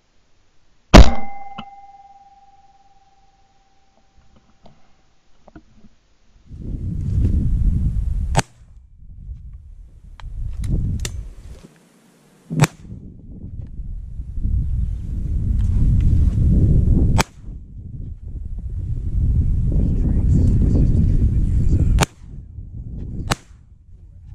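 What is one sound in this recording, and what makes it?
A shotgun fires loud single shots.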